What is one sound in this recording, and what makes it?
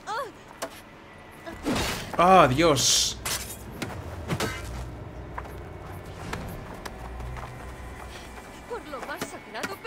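A young woman cries out and pleads desperately.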